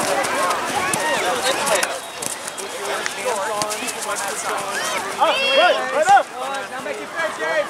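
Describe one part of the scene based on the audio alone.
Young girls shout and call out to each other outdoors.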